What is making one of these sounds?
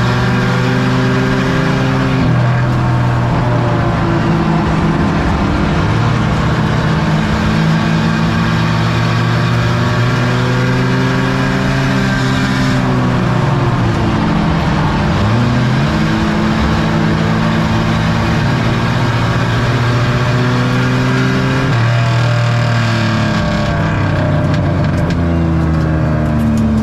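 A race car engine roars loudly up close, rising and falling in pitch as it revs.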